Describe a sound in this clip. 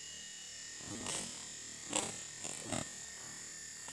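A rooster flaps its wings in a brief scuffle.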